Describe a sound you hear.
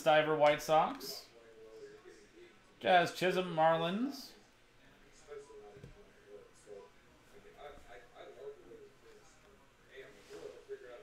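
Trading cards shuffle and slide against each other.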